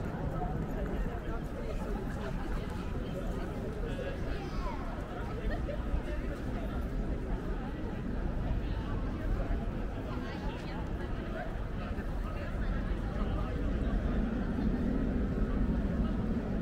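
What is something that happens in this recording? A crowd of people murmurs and chatters at a distance outdoors.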